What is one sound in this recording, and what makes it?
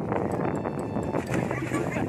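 A swimmer plunges into the water with a splash.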